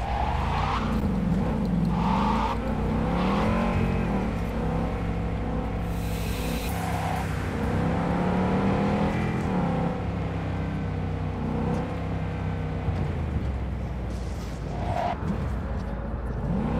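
A car engine hums and revs steadily while driving.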